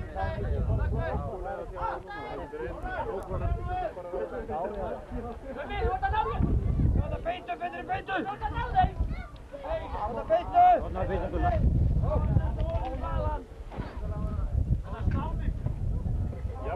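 A crowd of men and women chatter loudly close by.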